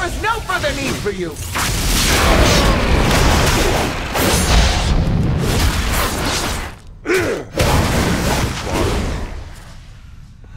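Magic spells blast and crackle in a fight.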